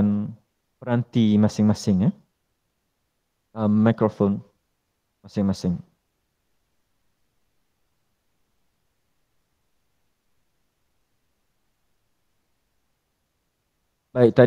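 A man speaks calmly through an online call microphone, in short bursts with pauses.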